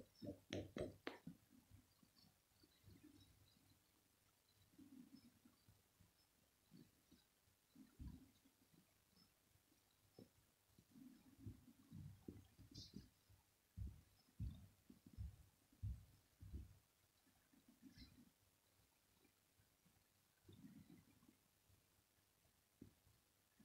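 A hand rubs and scratches a cat's fur.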